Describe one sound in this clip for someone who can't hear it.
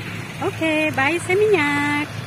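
A tractor engine idles with a low rumble.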